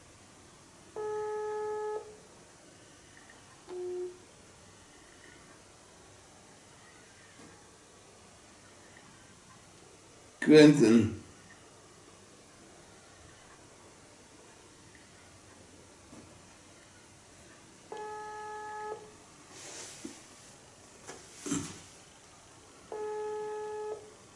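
A mobile phone plays short electronic tones.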